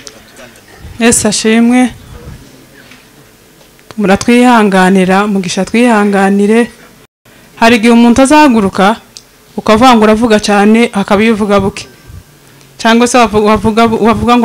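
A woman sings loudly through a microphone, in phrases with short pauses.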